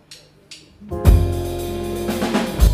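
A band starts playing loudly.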